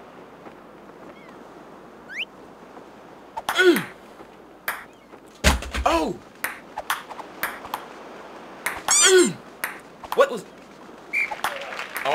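A table tennis ball clicks sharply off paddles and a table.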